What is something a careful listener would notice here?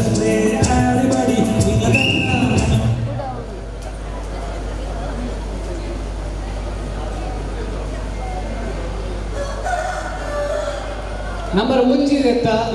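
A crowd of men and women calls out and chatters outdoors.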